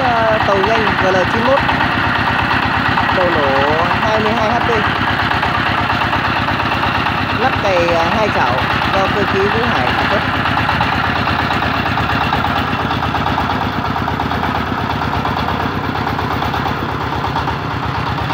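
A diesel engine chugs loudly and steadily close by.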